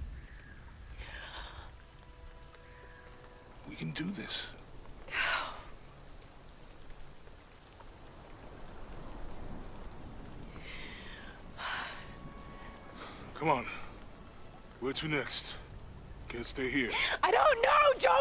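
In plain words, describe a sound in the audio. A young woman breathes heavily and sobs.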